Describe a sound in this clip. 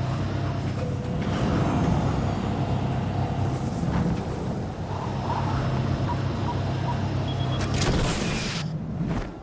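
A flying craft's engines roar and hum steadily.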